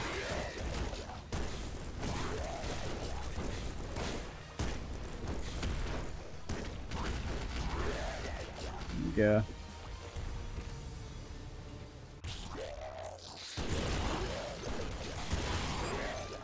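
Video game weapons fire.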